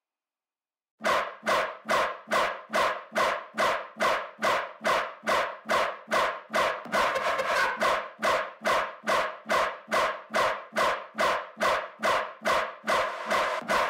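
A short pulsing synth tone repeats in a fast, steady rhythm.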